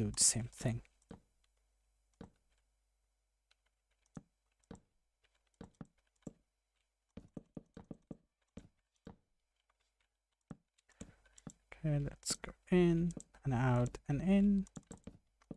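Wooden blocks are set down with short, soft knocks, one after another.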